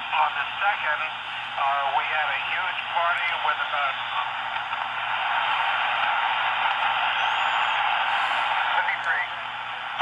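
Buttons click on a radio keypad.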